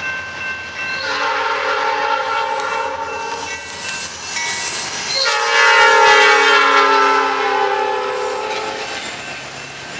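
A locomotive horn blares in long loud blasts.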